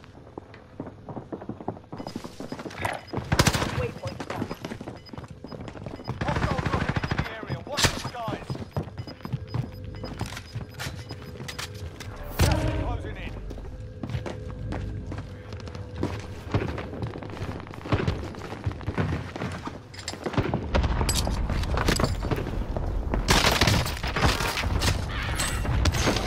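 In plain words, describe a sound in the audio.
Footsteps thud on wooden floors and stairs.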